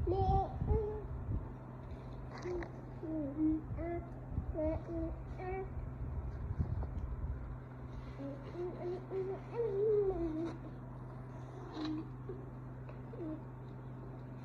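A toddler babbles and squeals in a high voice close by.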